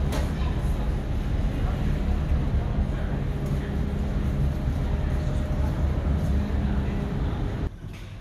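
Footsteps pass on a hard floor nearby.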